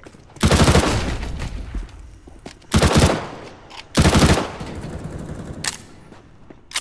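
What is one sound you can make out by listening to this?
A submachine gun fires loud bursts of shots.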